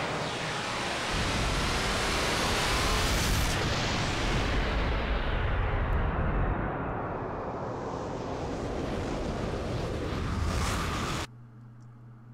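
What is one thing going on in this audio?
A huge explosion roars and rumbles, then slowly fades.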